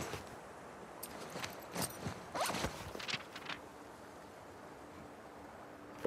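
Paper pages of a notebook rustle as they turn.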